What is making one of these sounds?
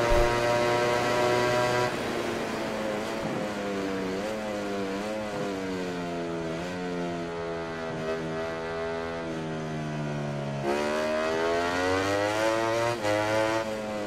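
A racing motorcycle engine screams at high revs, dropping in pitch as it slows into a corner and rising again as it speeds away.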